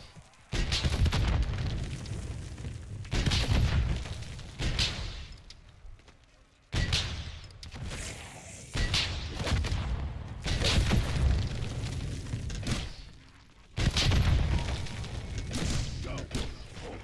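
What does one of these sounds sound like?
Heavy explosions boom and rumble again and again.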